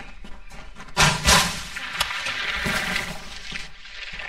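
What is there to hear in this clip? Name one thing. A heavy chest lid bangs open with a sparkling chime.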